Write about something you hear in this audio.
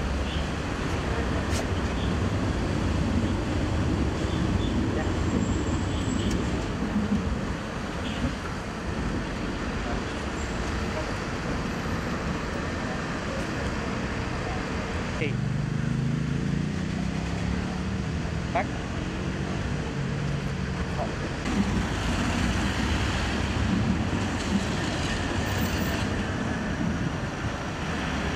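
Traffic rumbles steadily on a nearby road.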